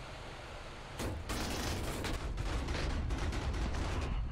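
A plane crashes into the ground with a loud, rumbling impact.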